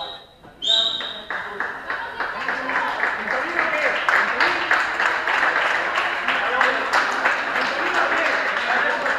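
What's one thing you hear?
Spectators cheer and clap loudly in an echoing hall.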